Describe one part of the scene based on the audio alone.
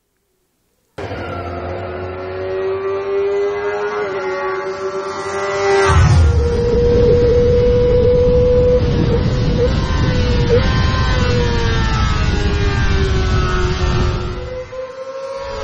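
A motorcycle engine roars at high revs as it speeds past.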